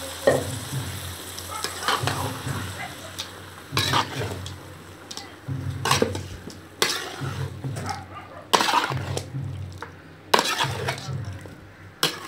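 A metal spoon stirs and scrapes food in a metal pot.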